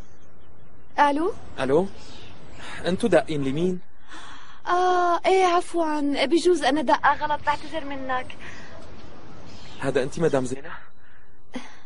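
A young man talks into a phone.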